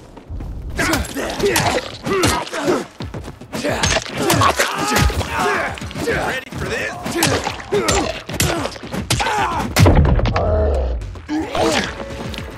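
Heavy blows thud as a weapon strikes a body.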